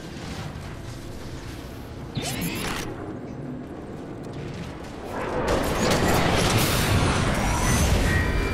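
Robots' metal footsteps clank and thud.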